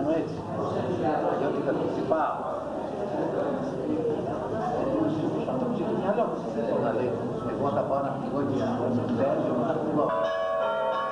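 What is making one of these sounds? Elderly men talk calmly together close by.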